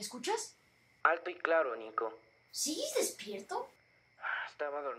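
A second young boy answers calmly over a phone.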